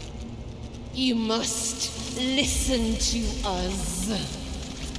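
A young woman speaks urgently and close by.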